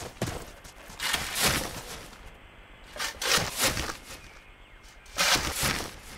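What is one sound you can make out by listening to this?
A knife swishes through the air several times.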